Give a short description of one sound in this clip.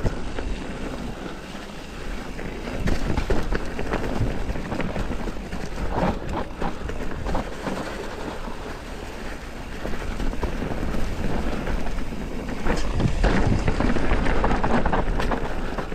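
Bicycle tyres roll and crunch over dry leaves and frozen ground.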